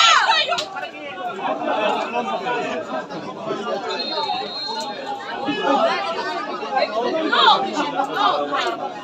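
Male players shout and call to each other across an open outdoor pitch.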